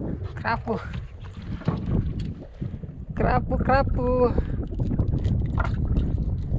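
Water laps gently against a small wooden boat.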